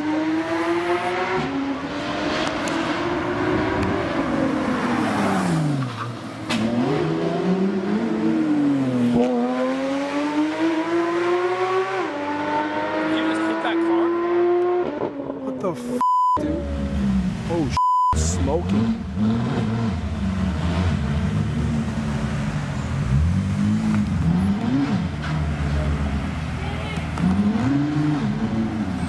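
A sports car engine revs loudly, its pitch rising and falling.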